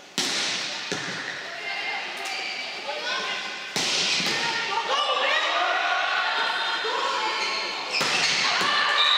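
Players shout and call out loudly across the court.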